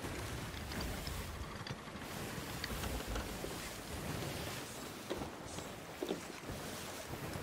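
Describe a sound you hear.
Rough sea waves crash and churn around a wooden ship.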